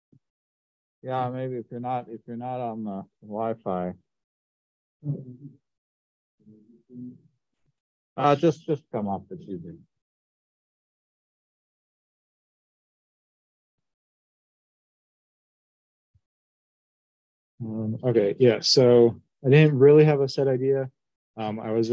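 A man speaks calmly through a computer microphone, in pauses.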